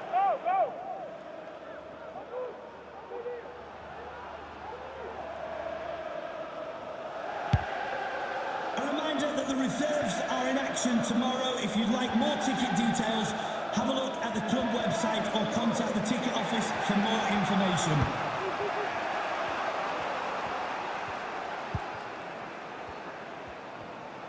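A football video game's stadium crowd murmurs and roars.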